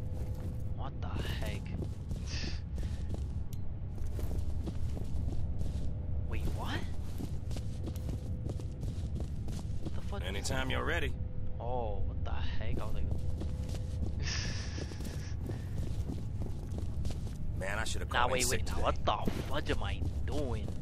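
A young man talks and laughs with animation, close to a microphone.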